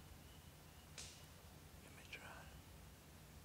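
A hunting bow clicks and knocks softly as it is raised.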